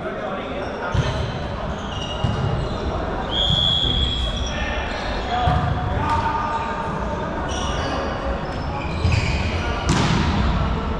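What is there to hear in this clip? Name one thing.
A volleyball is struck with a loud slap.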